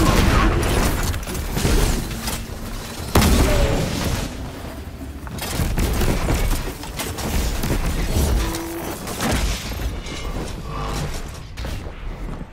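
Game gunfire blasts rapidly with loud bangs and explosions.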